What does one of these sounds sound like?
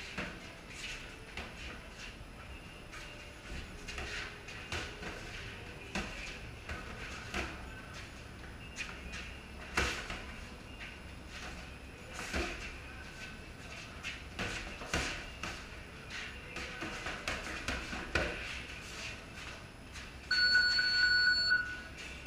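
Boxing gloves thud against each other in quick bursts.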